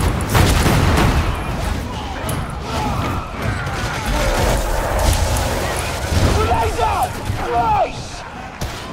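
Guns fire in loud bursts with booming low rumble.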